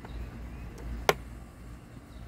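A plastic cover snaps into place with a click.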